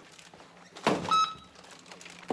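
An electronic keypad beeps.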